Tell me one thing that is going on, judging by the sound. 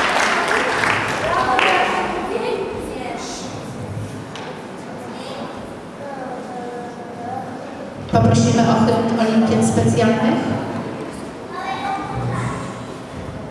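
Children and adults talk in a large echoing hall.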